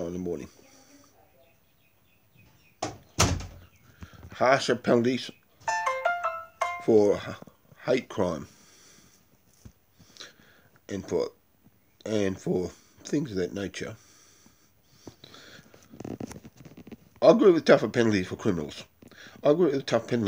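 A middle-aged man talks calmly and close to the microphone, in pauses.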